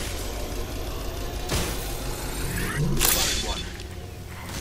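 A syringe hisses and clicks as a healing kit is used.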